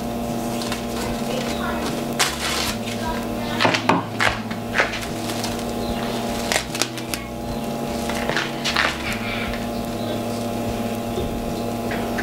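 Plastic film crinkles and rustles as it is pulled off.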